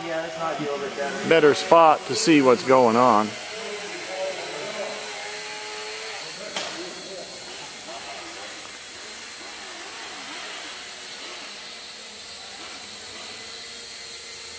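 A small drone buzzes with a steady high whine as it flies.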